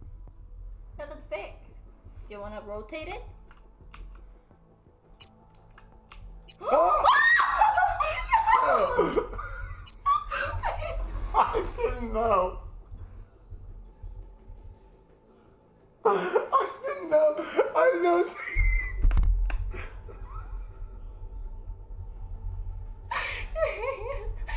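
A young man talks and laughs into a microphone.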